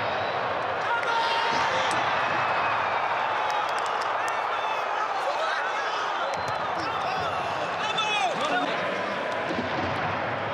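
A crowd cheers loudly after a goal.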